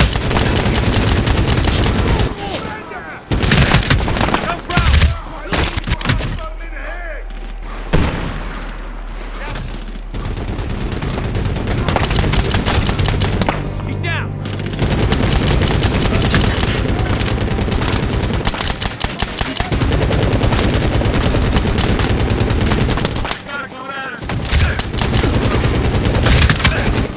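A rifle fires rapid bursts of gunshots at close range.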